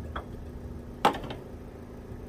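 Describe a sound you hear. A metal tool clanks once under a car bonnet.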